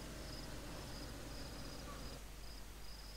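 A car engine hums as the car drives.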